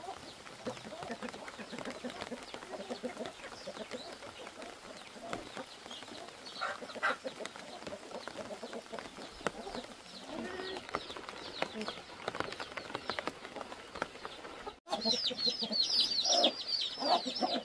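Chickens cluck softly outdoors.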